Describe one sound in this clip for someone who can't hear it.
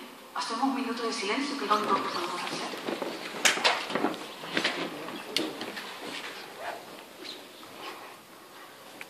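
A woman speaks into a microphone, amplified over loudspeakers in an echoing hall.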